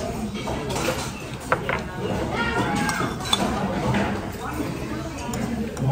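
A spoon clinks against a bowl.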